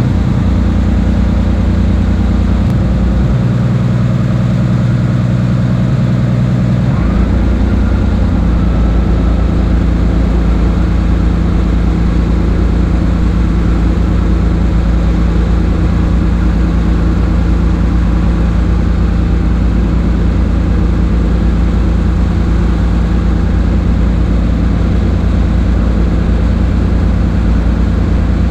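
An engine idles with a loud, steady low rumble.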